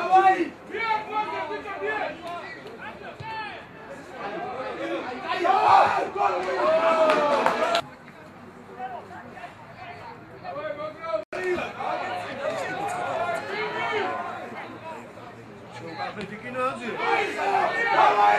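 Spectators shout and cheer at an outdoor match.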